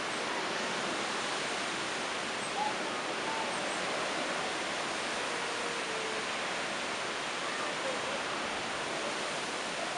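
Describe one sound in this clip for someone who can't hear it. Strong wind blows steadily outdoors, rustling through trees.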